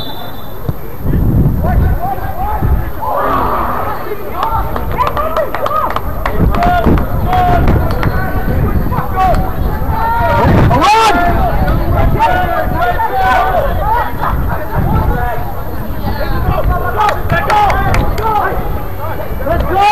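Young players shout and call to each other across an open field, some way off.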